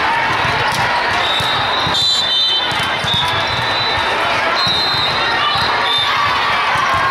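A volleyball is struck with a hard slap.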